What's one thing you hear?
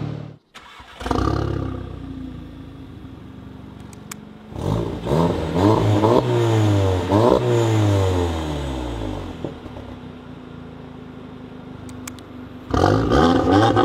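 A car engine idles with a low burble.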